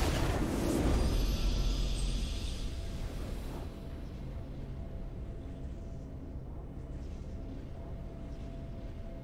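A victory fanfare plays.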